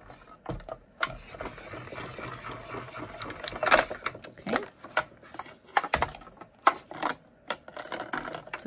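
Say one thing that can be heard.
A hand-cranked die-cutting machine grinds and rumbles as it is turned.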